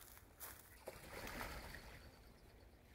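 Ducks splash and flap on the water.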